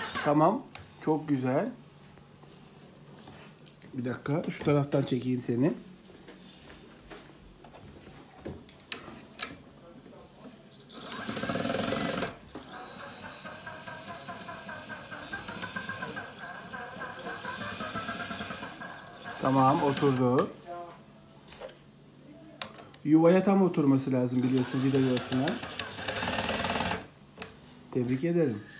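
An electric drill whirs in short bursts, speeding up and slowing down.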